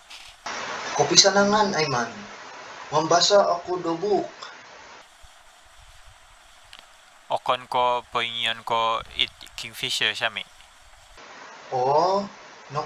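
A second young man answers into a phone close by.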